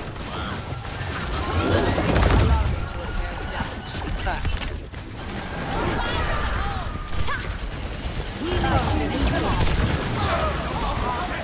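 Game gunfire shots ring out rapidly.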